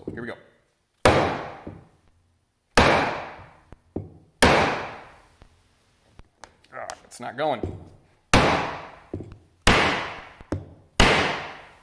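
A rubber mallet strikes a wooden block with ringing knocks.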